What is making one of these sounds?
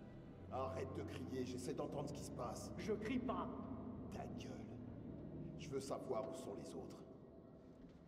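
Men argue tensely in raised voices.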